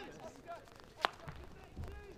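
A hockey stick cracks against a ball.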